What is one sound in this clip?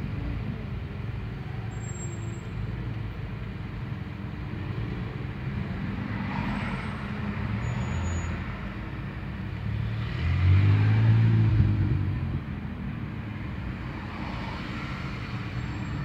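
A car engine idles with a low rumble, heard from inside the car.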